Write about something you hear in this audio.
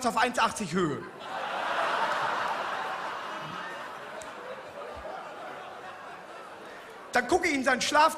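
An audience cheers and laughs in a large hall.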